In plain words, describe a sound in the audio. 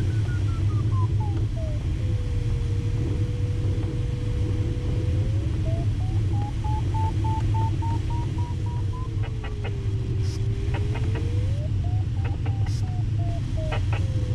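A glider's flight instrument beeps in a tone that slides up and down in pitch.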